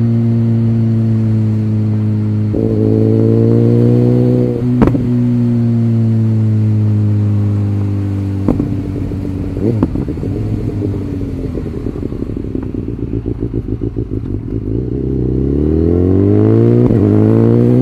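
A motorcycle engine hums steadily, drops to a low rumble while coasting, then revs up again.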